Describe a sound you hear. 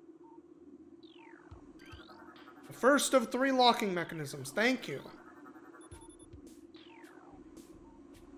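Electronic scanning tones chirp and rise in pitch now and then.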